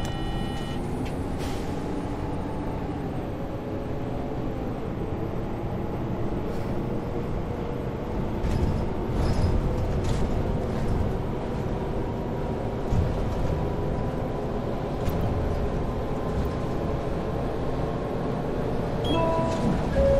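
A bus rattles and bumps over the road.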